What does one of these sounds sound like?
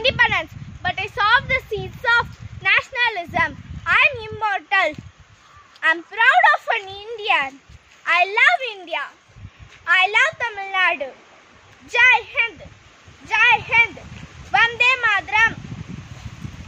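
A young girl speaks loudly and dramatically, close by.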